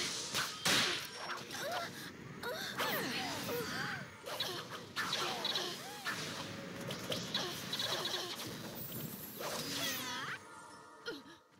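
Game weapons clash with sharp hits.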